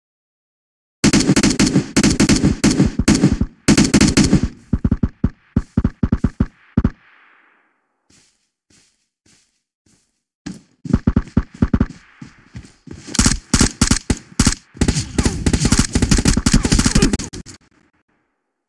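Rifle gunfire rattles in rapid, loud bursts.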